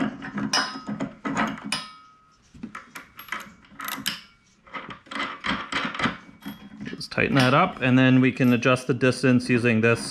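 Small metal parts click and clink as a bolt is fitted by hand.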